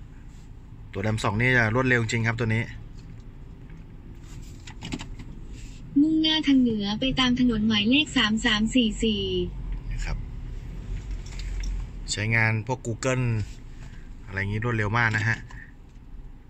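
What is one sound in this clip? A synthesized navigation voice speaks through a car loudspeaker.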